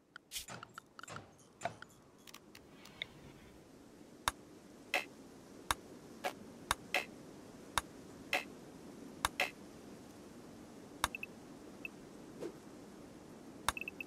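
Short sharp interface clicks sound now and then.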